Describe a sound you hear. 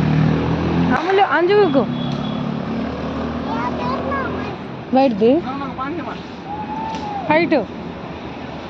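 A small girl speaks and squeals close by in a high voice.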